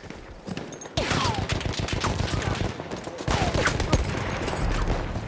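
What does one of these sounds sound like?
A machine gun fires rapid bursts of shots.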